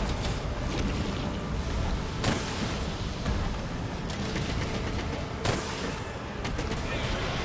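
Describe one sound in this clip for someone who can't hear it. A huge monster growls and rumbles deeply.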